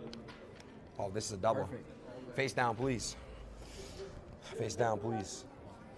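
Young men talk and exclaim excitedly close by.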